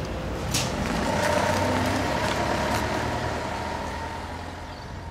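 A van engine idles nearby.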